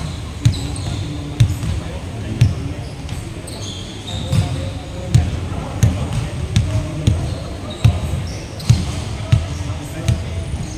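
A basketball bounces repeatedly on a hard floor in a large echoing hall.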